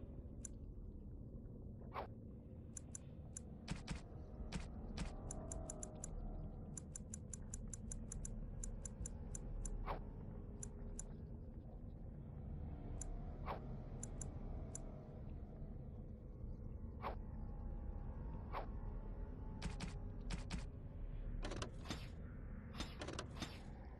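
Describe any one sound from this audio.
Short soft clicks tick rapidly as menu items are scrolled through.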